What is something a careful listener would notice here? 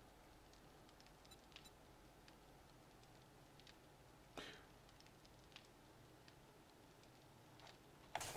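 A campfire crackles and pops softly.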